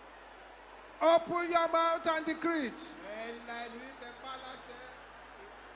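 A man shouts a prayer loudly through a microphone in a large echoing hall.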